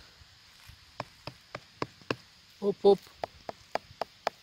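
A finger taps lightly on a mushroom, again and again.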